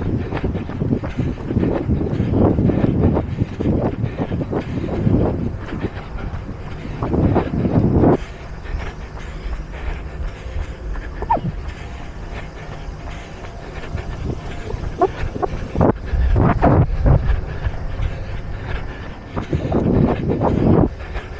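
Wind buffets and rumbles outdoors in gusts.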